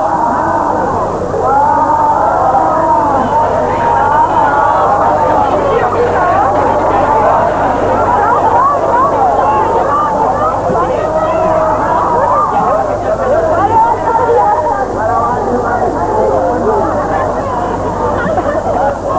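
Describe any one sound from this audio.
A large crowd of men and women chatters loudly outdoors.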